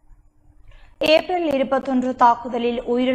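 A woman reads out calmly and clearly into a microphone.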